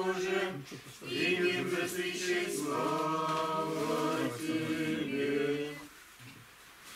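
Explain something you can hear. A group of men and women sing a slow chant together, then stop.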